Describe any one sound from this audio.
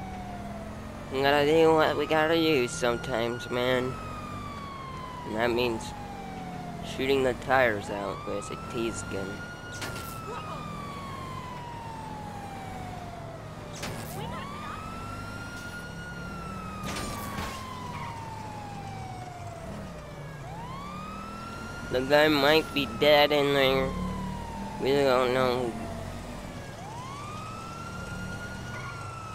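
A police siren wails, slowly rising and falling over and over.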